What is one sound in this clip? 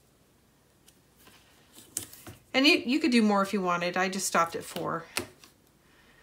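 Paper cards rustle and tap softly on a mat.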